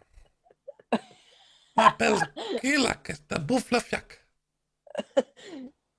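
A young man laughs over an online call.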